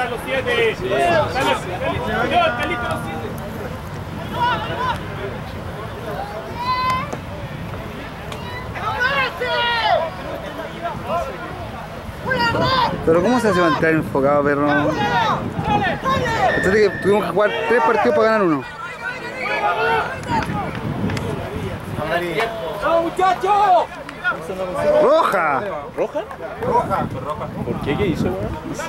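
Men and women close by shout and cheer with excitement, outdoors.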